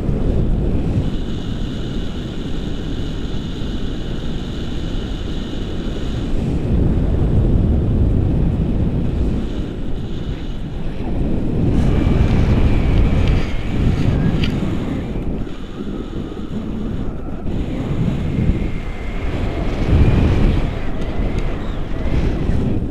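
Wind rushes and buffets loudly against a microphone.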